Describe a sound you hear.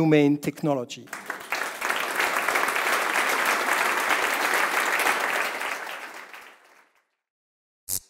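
An audience applauds and then fades out.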